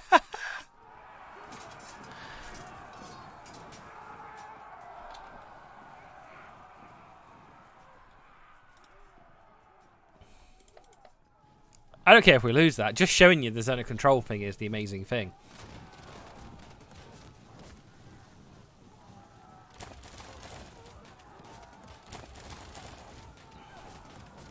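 Muskets fire in scattered crackling shots during a battle.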